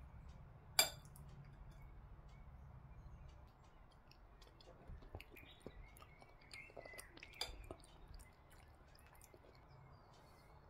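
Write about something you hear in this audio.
A metal spoon clinks and scrapes against a ceramic plate.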